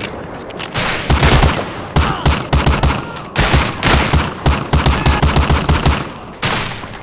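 A submachine gun fires rapid bursts.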